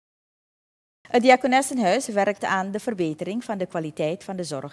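A woman speaks clearly and steadily into a microphone, close by.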